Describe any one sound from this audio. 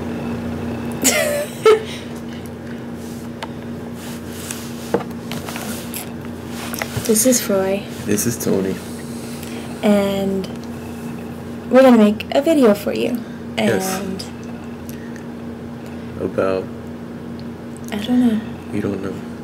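A young woman talks casually and laughs, close to a webcam microphone.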